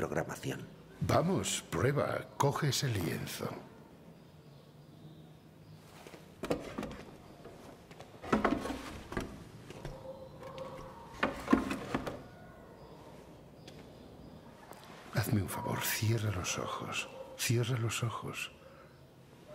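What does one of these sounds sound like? An elderly man speaks gently and close by.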